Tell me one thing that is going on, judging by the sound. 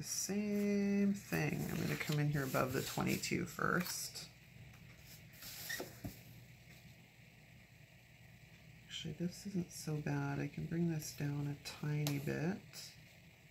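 A sticker backing peels and crinkles.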